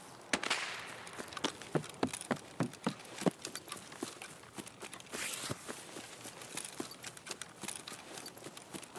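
Footsteps crunch steadily through grass and brush.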